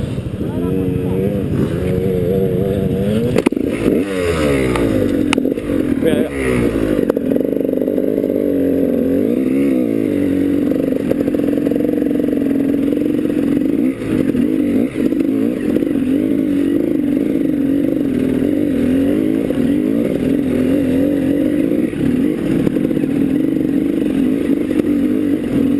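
A dirt bike engine close by roars and revs up and down.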